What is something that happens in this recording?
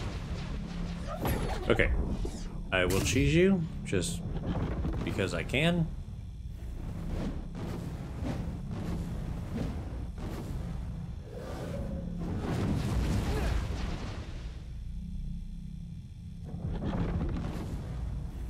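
Metal weapons clash and swing.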